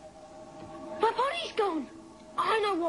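A young boy shouts out excitedly.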